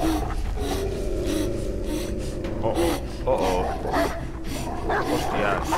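A young man gasps and pants heavily, close by.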